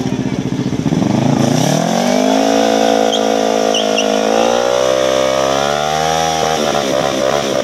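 A motorcycle engine revs up high in repeated rising bursts.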